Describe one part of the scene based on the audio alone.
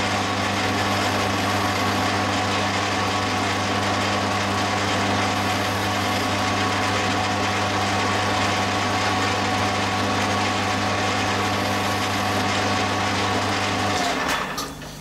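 A lathe's cutting tool scrapes and hisses against turning metal.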